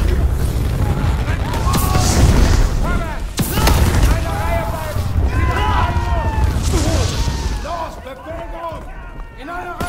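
Flames crackle and burn.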